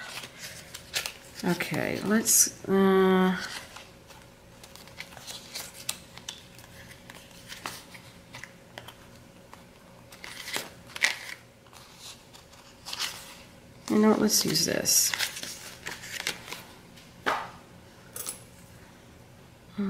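Plastic-backed sticker sheets rustle and crinkle as they are flipped close by.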